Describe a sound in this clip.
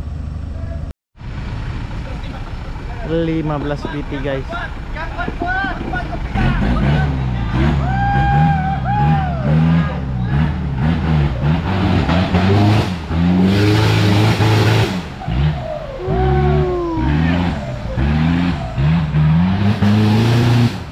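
An off-road truck engine roars and revs hard, rising and falling.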